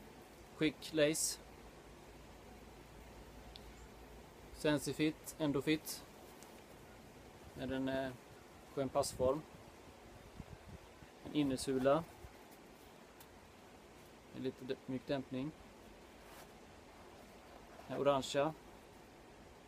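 A man talks calmly and closely into a microphone, in short bursts with pauses.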